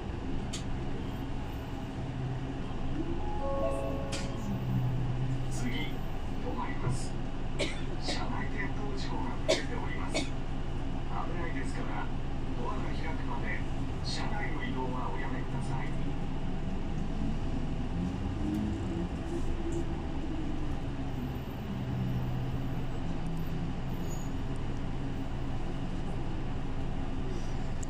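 A bus engine hums steadily, rising and falling as the bus moves.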